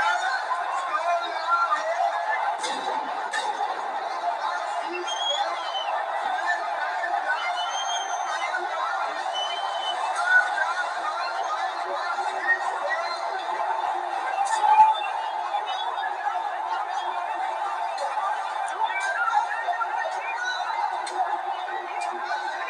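A large crowd shouts and chants in the distance.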